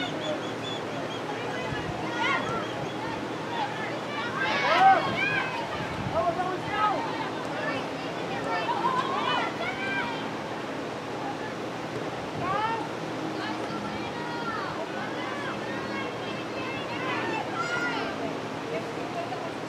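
Young women call out to each other far off across an open field.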